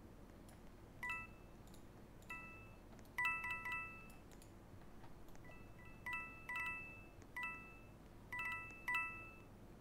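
Bright chiming pings ring out again and again as coins are collected.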